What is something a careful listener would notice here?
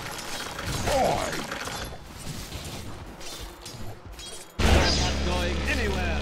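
Magical zaps and impacts ring out in a video game battle.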